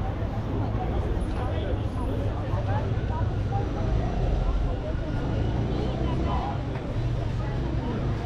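A crowd of men and women chat calmly nearby outdoors.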